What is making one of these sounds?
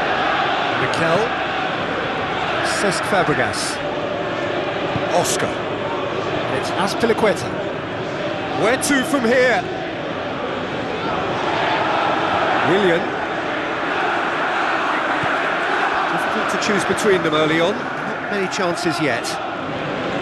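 A football is kicked with sharp thuds now and then.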